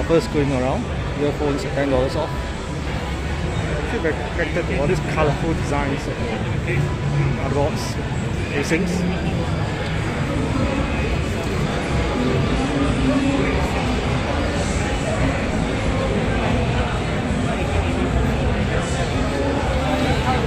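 Many people chatter and murmur around in a large, echoing hall.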